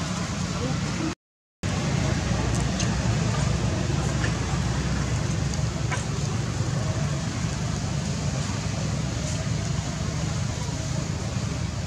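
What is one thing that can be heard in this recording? Monkeys rustle in dry leaves on the ground.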